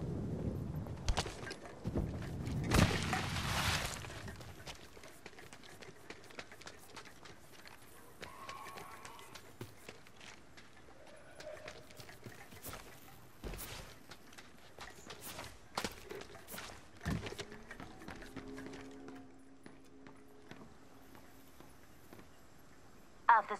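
Footsteps patter quickly on dirt and wooden floors.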